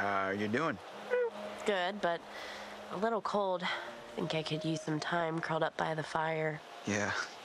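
A young woman answers softly, close by.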